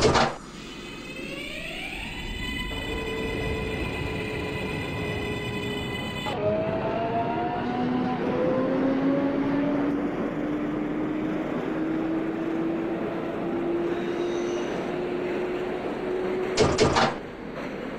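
A subway train's electric motors whine, rising in pitch as the train speeds up.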